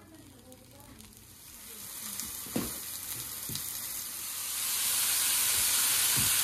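Meat sizzles loudly on a hot grill pan.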